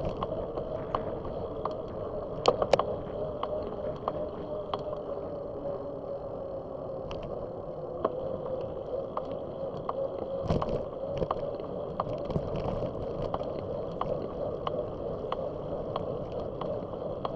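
Wind rushes steadily past a moving bicycle.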